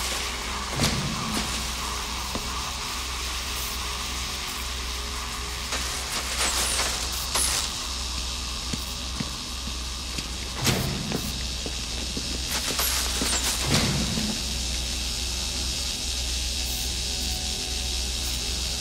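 A low electrical hum drones steadily.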